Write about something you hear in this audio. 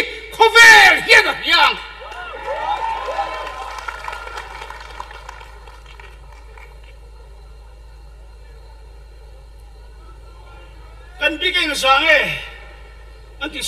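A middle-aged man sings loudly through a microphone, with a ringing echo.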